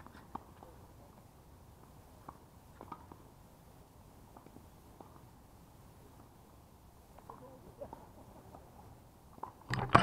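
Tennis balls pop faintly off rackets in the distance.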